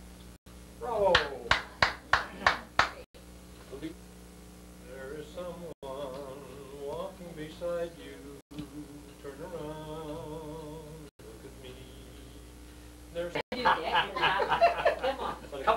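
Several men laugh heartily.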